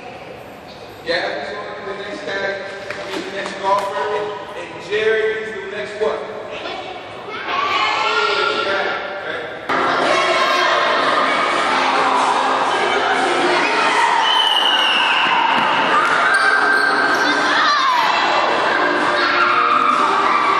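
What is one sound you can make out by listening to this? Young children chatter and call out in a large echoing hall.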